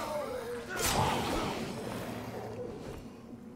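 A blade strikes with a heavy impact.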